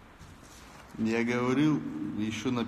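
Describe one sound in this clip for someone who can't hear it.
A young man speaks loudly and close through a phone microphone.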